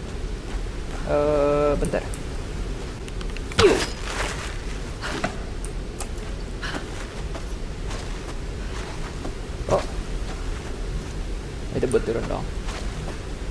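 A young man speaks close into a headset microphone.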